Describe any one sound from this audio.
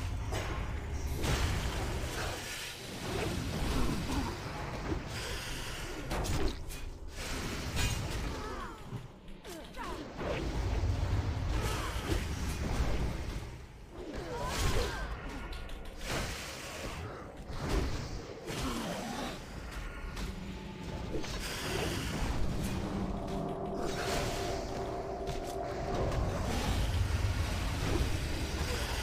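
A young man talks with animation into a microphone close by.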